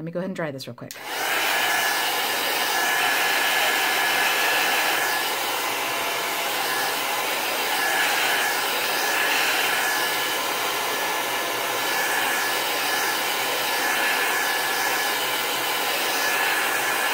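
A heat gun blows with a steady loud whooshing roar.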